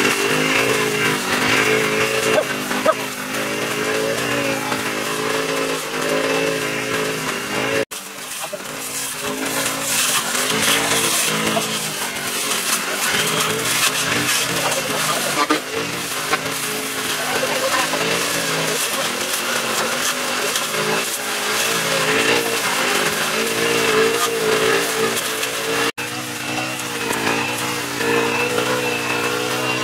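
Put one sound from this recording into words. A petrol string trimmer engine whines steadily close by, rising and falling in pitch.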